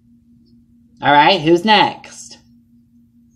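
A young woman speaks briefly and calmly, close by.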